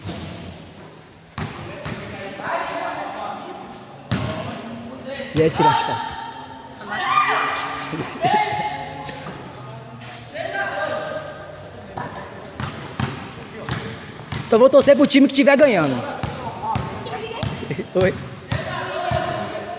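Boys shout and call out to each other in a large echoing hall.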